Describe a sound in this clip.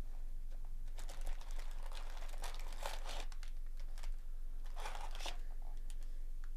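Foil card packs crinkle and rustle.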